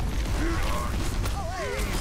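An electric beam crackles and hums.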